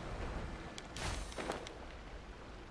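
Wind rushes past in short whooshes.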